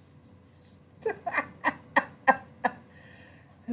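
A woman laughs in short bursts over an online call.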